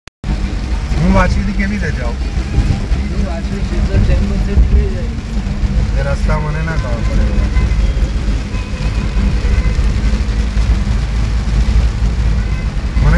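A car engine rumbles low while driving.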